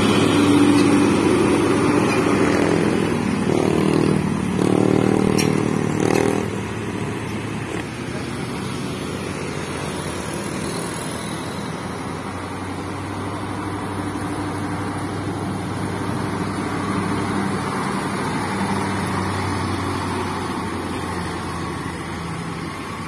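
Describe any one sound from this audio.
Traffic rolls past on a wet road.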